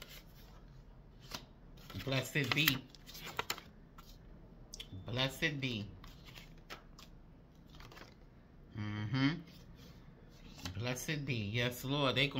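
Paper cards rustle and flick against each other close by.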